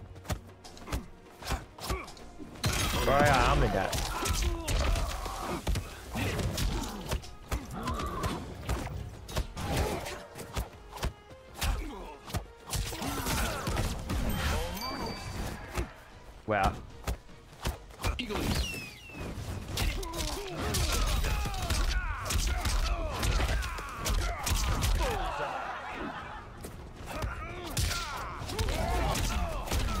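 Punches and kicks thud in a video game fight.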